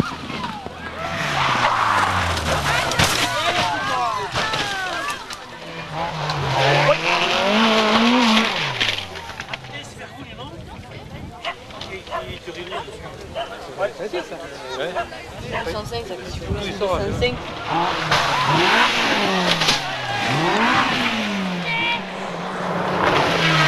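A rally car engine revs hard and roars.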